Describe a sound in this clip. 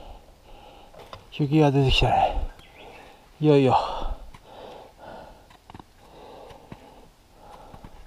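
Footsteps crunch on a rocky trail.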